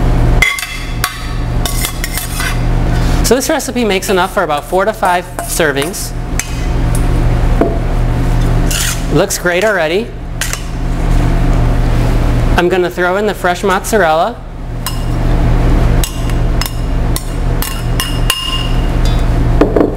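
A metal spoon scrapes and clinks in a metal bowl.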